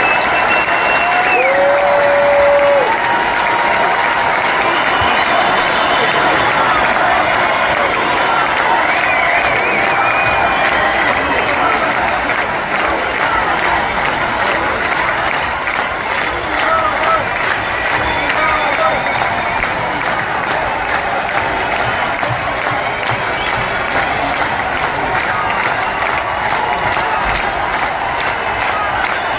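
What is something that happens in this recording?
A woman sings loudly through powerful loudspeakers in a large echoing arena.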